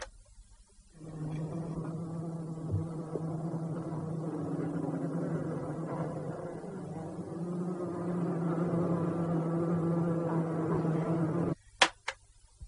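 Bees buzz in a steady, droning hum.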